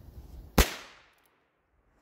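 A pistol fires a sharp shot outdoors, echoing off.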